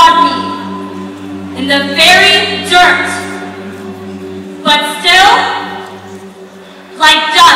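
A young man sings through a microphone.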